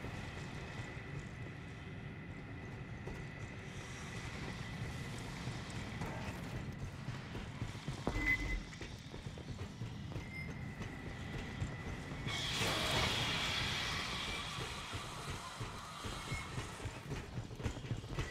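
Boots tread on a metal grating.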